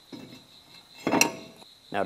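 A heavy brake disc clanks as it is handled.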